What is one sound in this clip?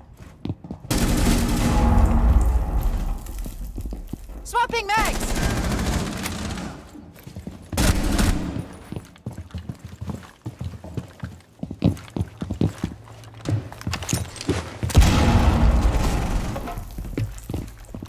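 Rifle shots fire in rapid bursts close by.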